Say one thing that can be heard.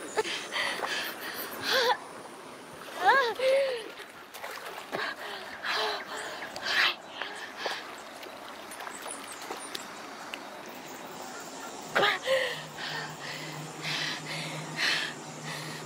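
Water splashes as feet step into a shallow stream.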